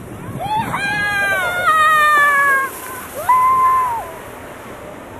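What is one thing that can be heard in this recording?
A young child squeals and shouts excitedly close by.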